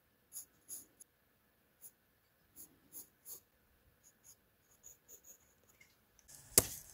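A pencil scratches lightly across paper in short strokes.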